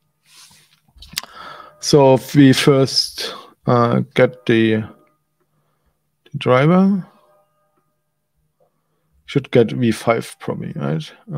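A man talks calmly and close to a microphone, in short bursts.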